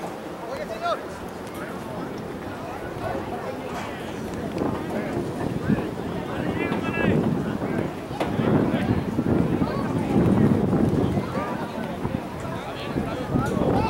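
Young men call and shout to each other outdoors, from far off.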